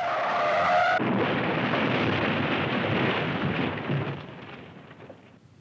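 A car crashes and tumbles with crunching metal and scraping.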